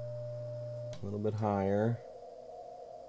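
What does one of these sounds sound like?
A radio's tone warbles up and down quickly.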